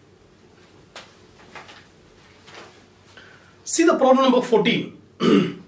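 Paper rustles in a man's hand.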